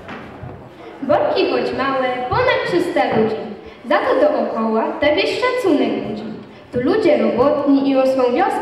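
A group of children sings together loudly through loudspeakers.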